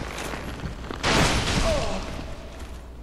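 A magic blast bursts with a rushing roar.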